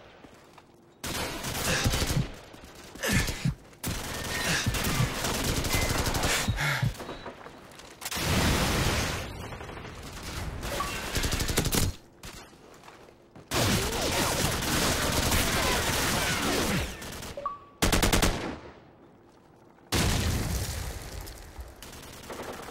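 A rifle fires loud bursts of gunshots.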